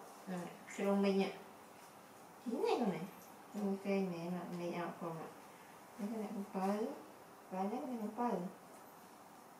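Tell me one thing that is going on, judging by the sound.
A young woman talks softly and close by.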